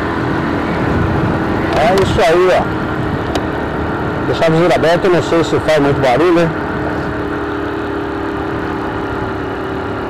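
A motorcycle engine hums steadily on the move.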